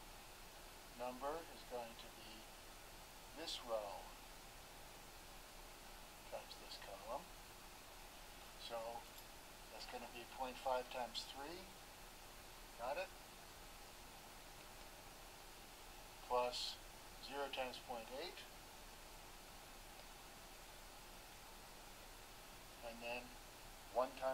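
An older man speaks calmly in short phrases with pauses, close by.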